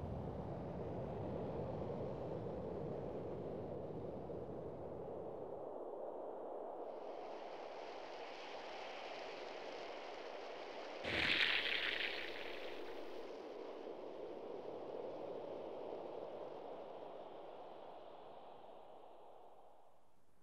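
Wind blows steadily outdoors and slowly fades.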